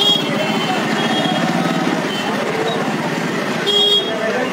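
A scooter engine idles and putters nearby.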